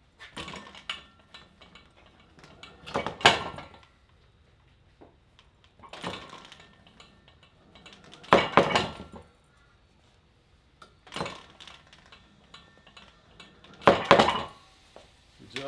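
A metal cable and handle clank and rattle in loud bursts.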